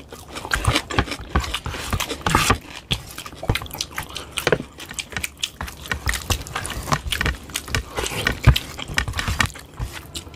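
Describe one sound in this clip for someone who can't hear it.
Fingers squelch and mix wet food on a plate.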